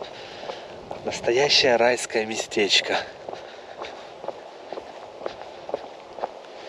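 Footsteps crunch steadily on a gravel path outdoors.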